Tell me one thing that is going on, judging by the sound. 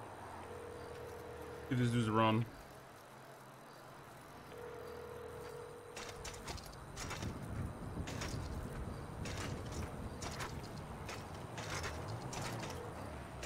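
Bicycle tyres roll along a paved road.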